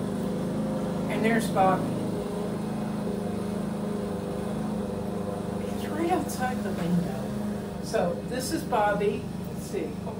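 An older woman speaks close by, calmly.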